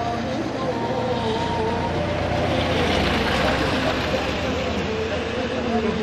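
A car drives past close by with a rushing sound.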